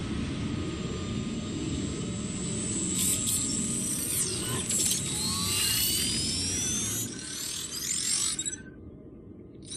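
A drone whirs and roars as it flies overhead.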